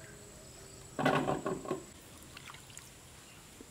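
Fruit splashes in a basin of water.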